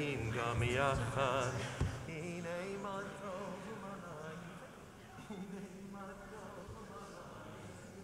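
A group of people sing together in a large echoing hall.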